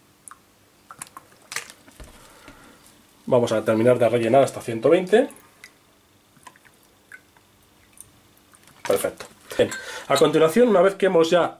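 A glass clinks as it is set down on a table.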